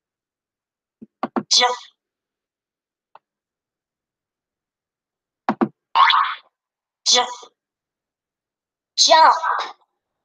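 A woman speaks slowly and clearly, heard through an online call.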